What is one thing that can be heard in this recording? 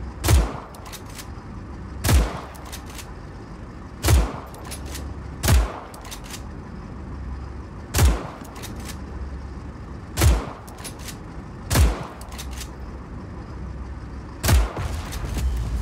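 Heavy gunshots boom one at a time at a slow, steady pace.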